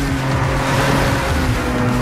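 A car crashes into roadside barriers with a loud bang.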